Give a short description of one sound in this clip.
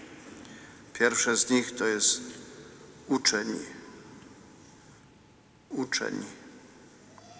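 An elderly man reads aloud slowly through a microphone in a large echoing hall.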